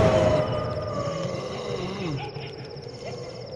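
A man groans in pain close by.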